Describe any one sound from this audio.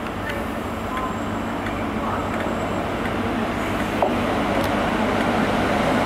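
A diesel train rumbles as it approaches slowly.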